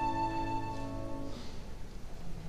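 A violin plays a sustained final note in an echoing hall.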